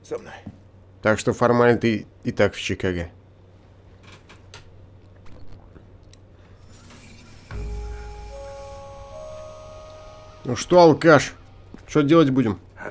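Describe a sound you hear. A younger man answers in a calm voice.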